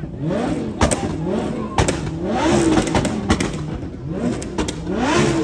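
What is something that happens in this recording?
A car engine revs hard, rising and falling over and over.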